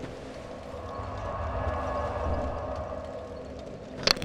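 A fire roars and rumbles steadily.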